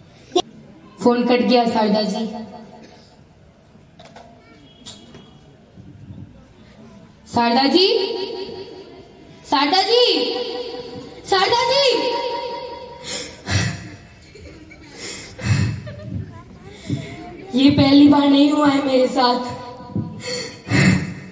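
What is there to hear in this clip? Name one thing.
A young man sings into a microphone through loudspeakers, outdoors.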